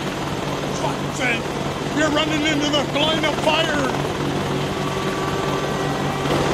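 A helicopter engine drones steadily.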